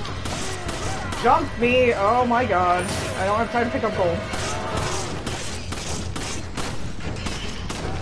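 Guns fire in sharp shots.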